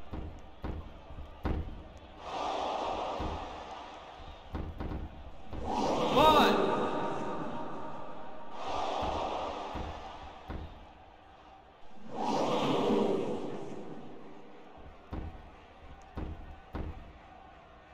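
Bodies slam onto a wrestling mat with heavy thuds.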